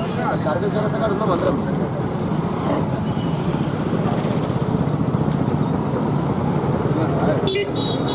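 Traffic passes on a street outdoors.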